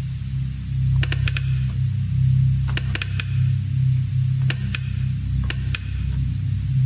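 Sharp electronic clicks sound in quick bursts.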